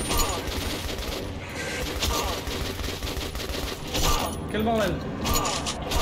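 A rifle fires in sharp bursts.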